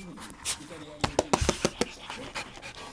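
Dog paws scrabble and thump on the floor.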